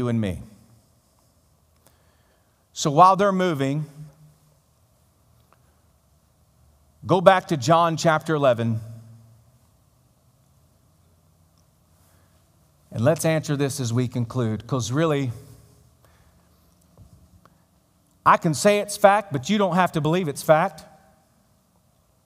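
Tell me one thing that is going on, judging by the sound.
A man speaks with animation in bursts through a microphone in a large echoing hall.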